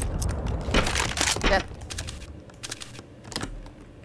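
A rifle scope clicks as it zooms in.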